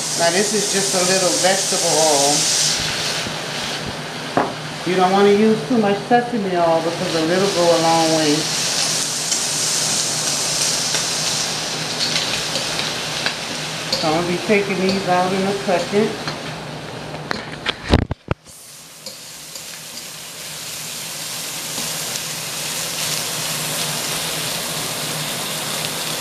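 Shrimp sizzle steadily in a hot pan.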